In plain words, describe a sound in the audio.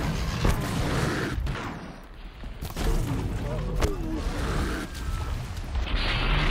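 A bowstring twangs as an arrow is loosed.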